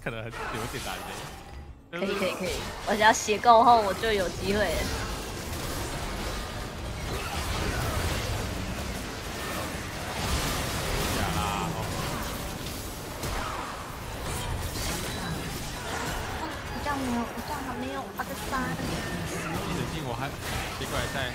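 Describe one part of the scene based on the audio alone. Magic blasts burst and crackle in a busy fight.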